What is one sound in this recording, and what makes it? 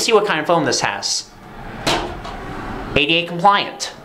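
A plastic cover clicks open and shut.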